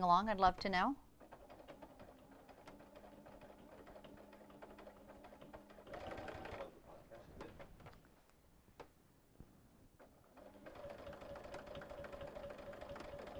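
A sewing machine hums and stitches steadily.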